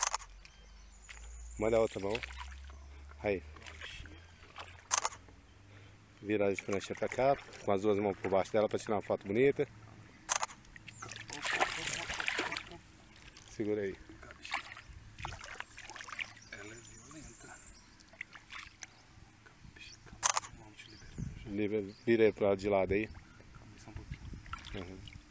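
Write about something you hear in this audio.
Water splashes as hands move through shallow water.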